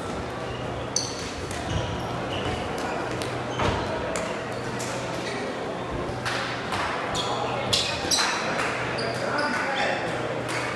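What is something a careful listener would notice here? Shoes squeak sharply on a sports floor.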